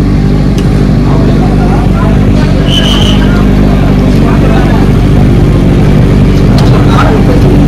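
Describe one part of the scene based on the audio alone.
A crowd chatters outdoors in the distance.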